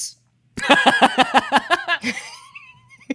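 A young man laughs loudly into a microphone.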